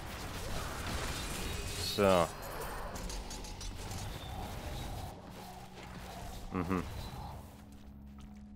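Magic spells crackle and burst during a fight.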